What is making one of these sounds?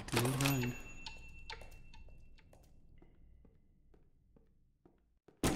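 Footsteps thud slowly on wooden floorboards.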